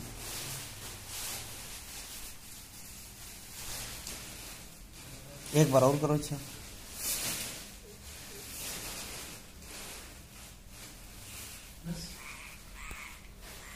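Nylon fabric rustles and swishes as it is folded.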